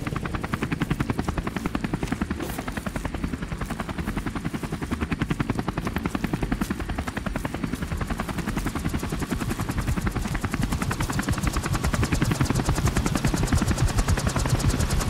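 A helicopter's rotor thumps rapidly and steadily, growing louder.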